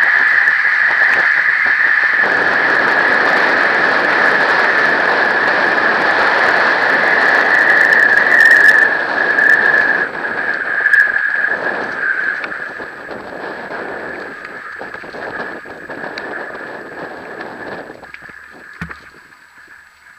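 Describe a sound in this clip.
Wind rushes loudly past, outdoors.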